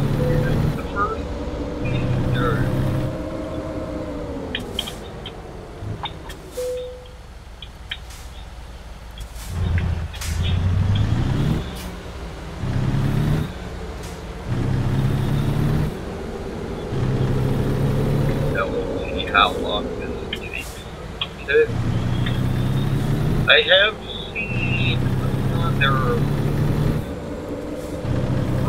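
A truck's diesel engine rumbles and revs up and down as it shifts through gears.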